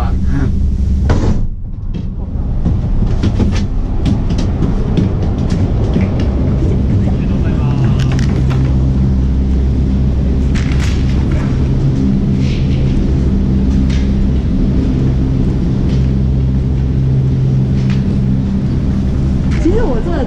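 A gondola cabin clanks and rattles as it rolls through the station.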